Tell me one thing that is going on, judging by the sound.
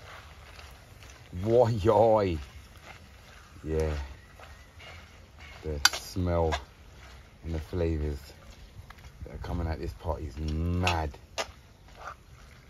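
Hands squish and stir raw meat and vegetables in a metal pot.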